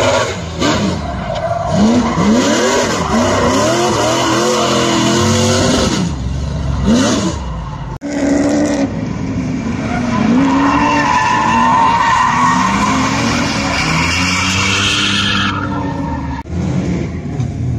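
Tyres squeal loudly on asphalt.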